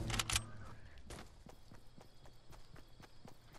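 Footsteps run on grass.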